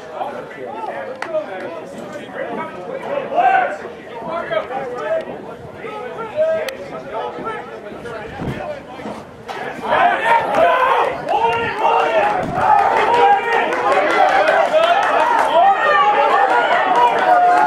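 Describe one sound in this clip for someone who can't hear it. Spectators nearby talk and call out outdoors, growing louder and more excited.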